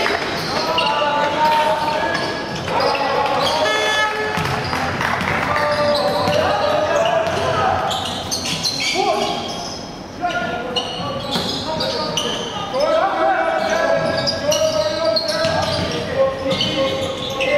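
Sneakers squeak sharply on a hard court, over and over.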